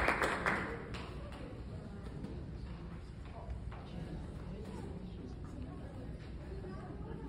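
A woman speaks through a microphone in a large hall.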